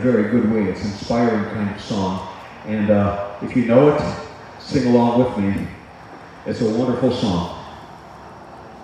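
A man speaks through a loudspeaker outdoors, in short, measured phrases.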